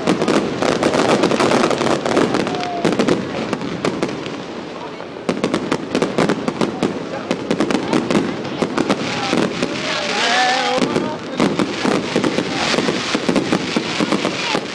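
Fireworks burst and crackle in rapid loud bangs.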